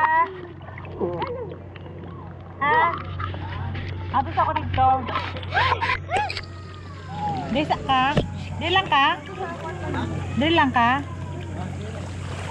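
Children shout and squeal in a pool.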